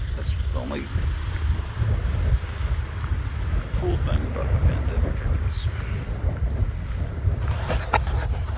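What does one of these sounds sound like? A middle-aged man speaks close by.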